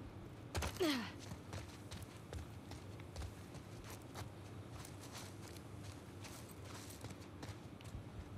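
Footsteps crunch on gravel and debris.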